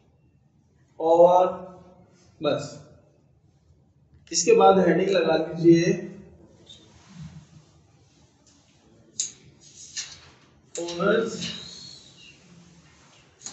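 A man speaks in bursts, explaining calmly.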